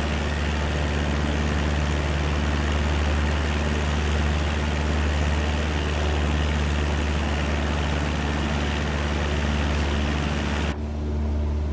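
A small propeller plane's engine drones steadily outside.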